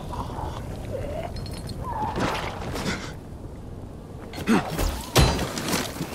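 Fire crackles and roars close by.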